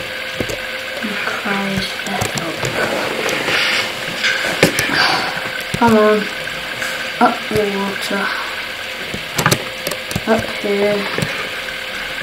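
Water swirls and splashes as a swimmer moves underwater.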